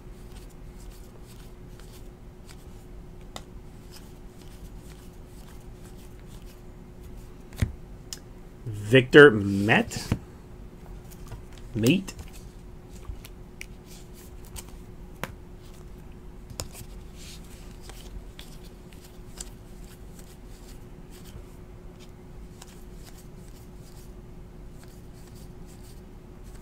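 Trading cards rustle and click softly as hands flip through them.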